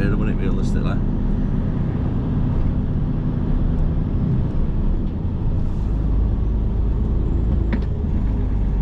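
Car tyres roll on the road surface.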